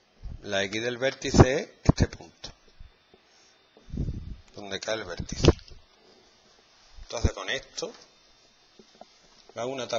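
A man speaks calmly, explaining.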